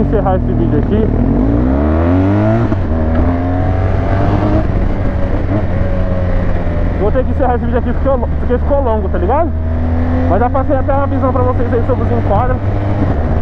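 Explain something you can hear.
A motorcycle engine revs up and climbs in pitch as the motorcycle pulls away.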